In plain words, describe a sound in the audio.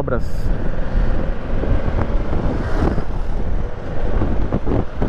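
A parallel-twin sport-touring motorcycle engine hums while cruising in traffic.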